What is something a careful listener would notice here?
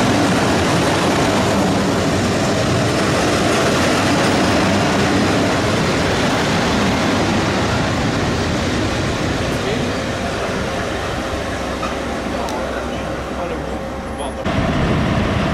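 A passenger train rolls past with a loud, steady rumble of wheels on the rails.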